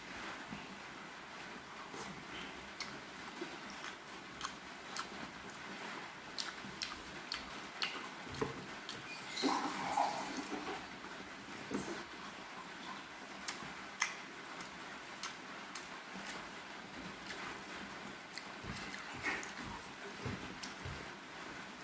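A man chews food with wet smacking sounds close by.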